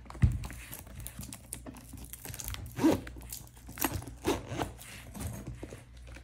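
A zipper slides open around a case.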